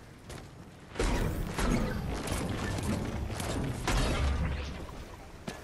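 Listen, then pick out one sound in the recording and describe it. A pickaxe strikes rock with repeated heavy thuds.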